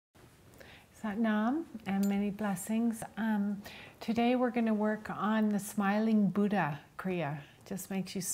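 A woman speaks calmly and softly, close to the microphone.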